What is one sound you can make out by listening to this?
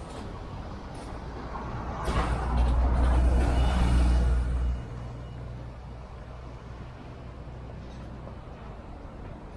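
City traffic hums steadily in the background.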